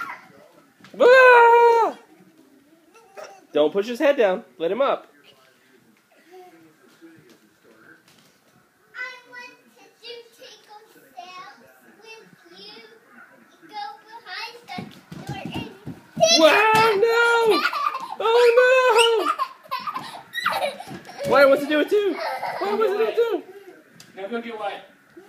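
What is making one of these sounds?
Young children squeal and shout playfully.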